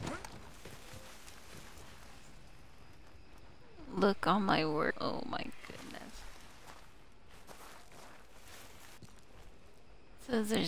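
Footsteps crunch slowly over rough ground.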